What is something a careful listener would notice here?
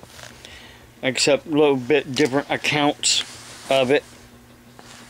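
An elderly man speaks briefly and calmly, close to the microphone.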